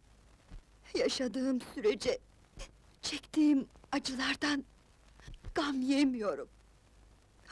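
A young woman speaks weakly and breathlessly.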